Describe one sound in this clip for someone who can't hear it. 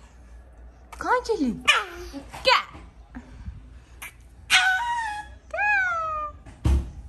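A toddler squeals and babbles excitedly.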